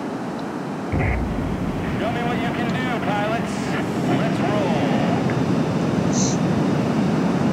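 Jet engines roar louder as an aircraft speeds up.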